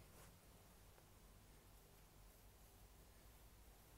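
Fabric rustles as a hand lifts and handles it.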